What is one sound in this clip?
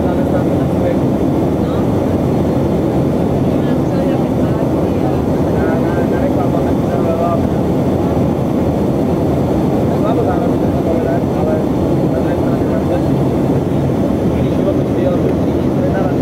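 An aircraft engine drones steadily from inside the cabin.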